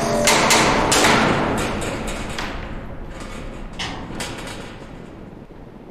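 Hanging scrap metal clatters and clangs.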